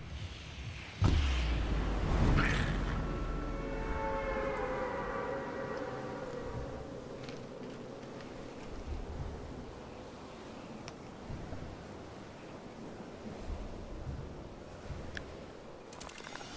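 Wind rushes past a falling skydiver and slowly eases.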